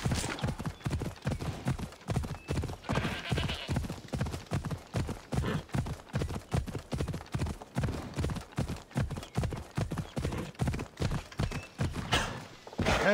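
Hooves gallop over soft ground in a quick, steady rhythm.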